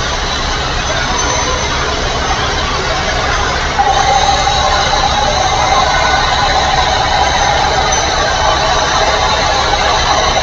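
A truck engine hums steadily as it drives along a highway.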